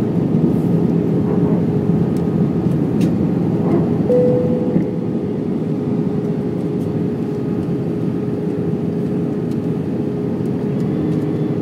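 Jet engines roar with a steady, low drone inside an airliner cabin.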